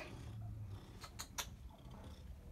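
A metal food bowl clinks as a cat noses into it.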